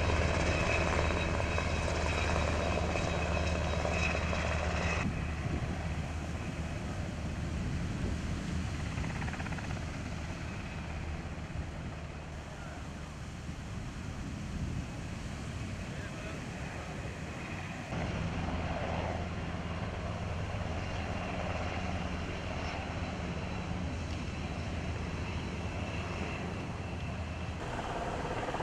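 A helicopter's rotor thumps and whirs steadily overhead.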